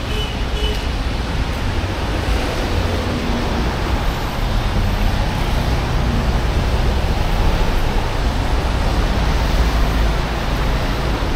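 Footsteps tap on wet pavement.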